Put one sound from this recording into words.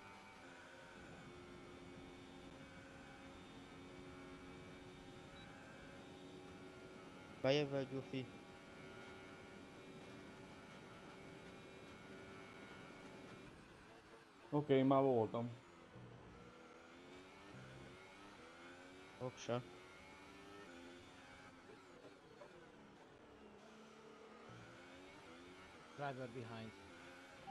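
A racing car engine drones at high revs, its pitch shifting as the car speeds up and slows.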